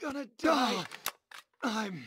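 A rifle magazine clicks and rattles as it is changed.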